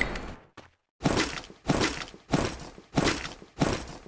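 Single gunshots boom one after another at a steady pace.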